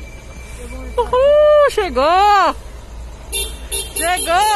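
A truck blares its horn loudly in rising and falling blasts.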